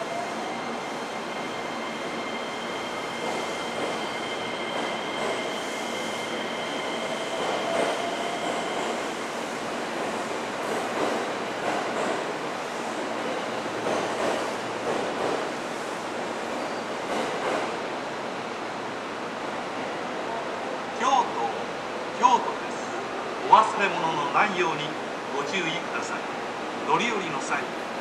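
A train rumbles slowly into the station.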